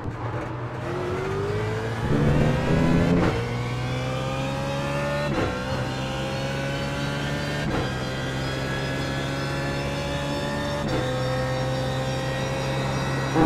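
A racing car engine roars steadily, climbing in pitch and dropping back at each gear change.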